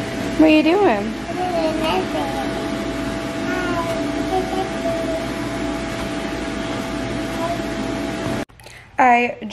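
An air blower hums steadily.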